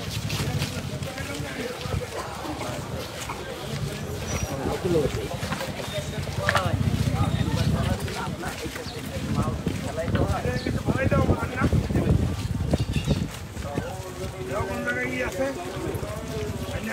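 Several men talk with animation close by, outdoors.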